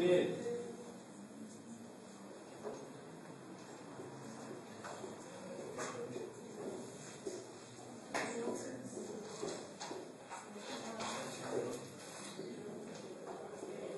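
A marker squeaks and taps on a whiteboard.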